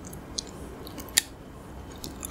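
A woman crunches candy close to a microphone.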